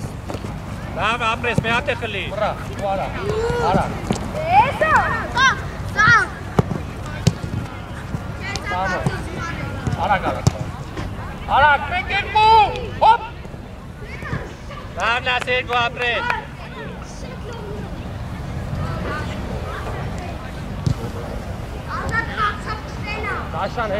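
Boys shout and call out outdoors.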